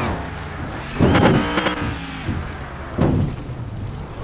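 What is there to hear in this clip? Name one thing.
A car crashes with loud thuds.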